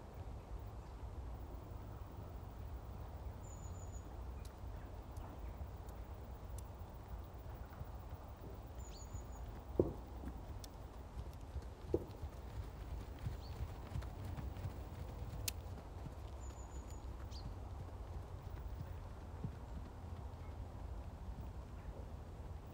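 A horse's hooves thud softly on sand as it trots.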